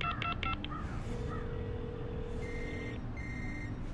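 A young man talks into a phone.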